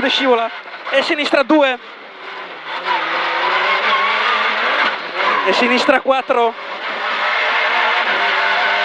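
A rally car engine roars and revs hard inside the cabin.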